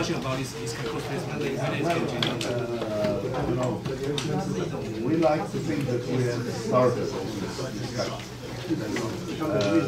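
A middle-aged man lectures calmly through a microphone.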